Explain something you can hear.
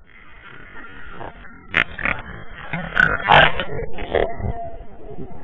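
A man splashes loudly into water.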